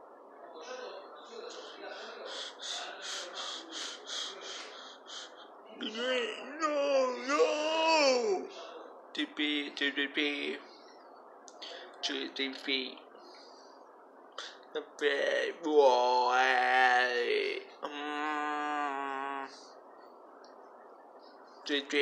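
A young man speaks close to a microphone, with animation.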